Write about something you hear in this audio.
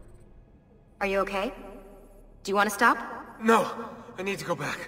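A woman asks a question with concern, close by.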